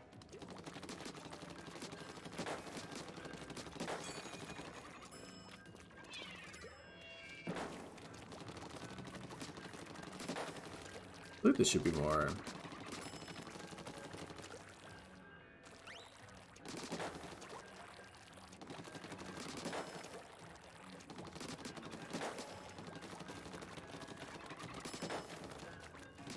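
Paint guns fire and splatter in quick bursts.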